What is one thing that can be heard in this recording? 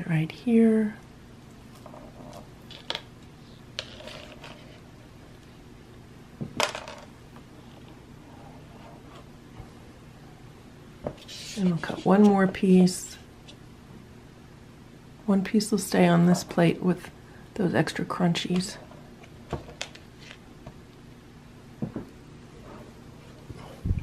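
A plastic knife scrapes and taps against a paper plate.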